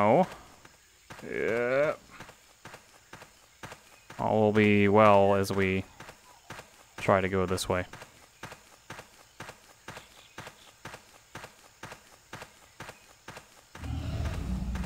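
Footsteps crunch steadily over soft ground.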